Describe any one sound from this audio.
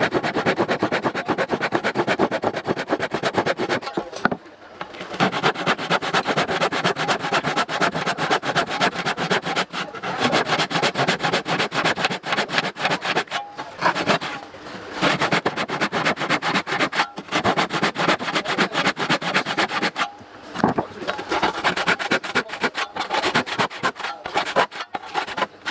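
A hand saw rasps quickly back and forth through wood.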